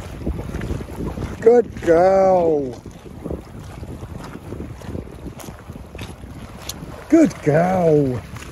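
Small waves lap against a rocky shore.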